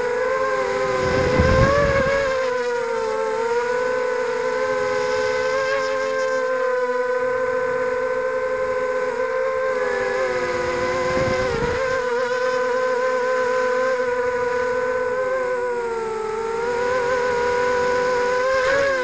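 A small drone's propellers whine steadily, rising and falling in pitch.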